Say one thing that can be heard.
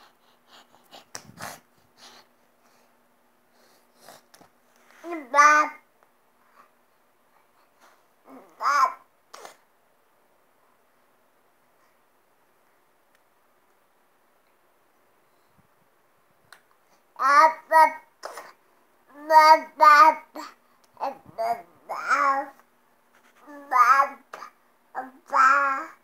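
A baby claps its small hands softly.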